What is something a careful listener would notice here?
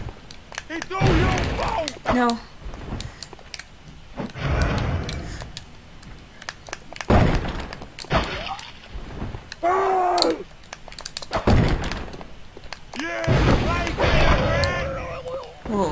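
Flames burst with a whoosh.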